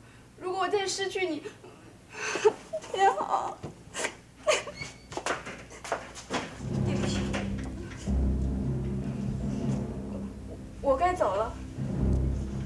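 A young woman speaks softly and tearfully, close by.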